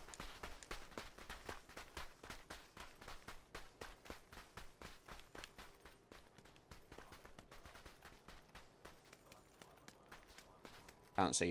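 Footsteps run over dry dirt.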